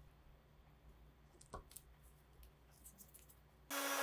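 A plastic spring clamp snaps shut on wood.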